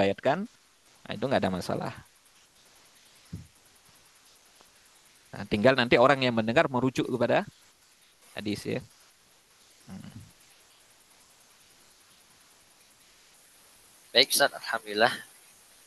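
A young man speaks through an online call.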